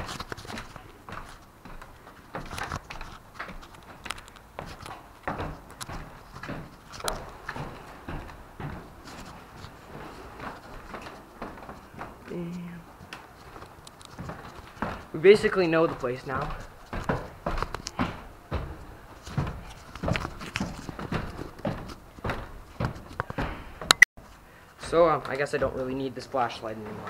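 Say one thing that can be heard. Footsteps thud and creak on wooden stairs and floorboards.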